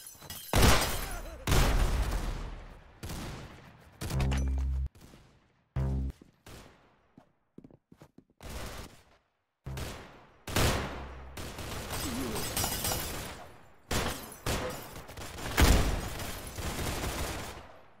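Game gunshots and hits crack in quick bursts.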